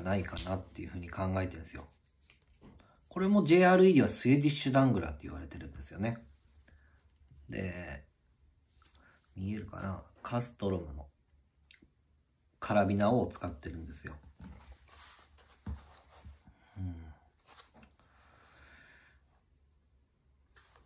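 A leather sheath rustles and creaks in hands.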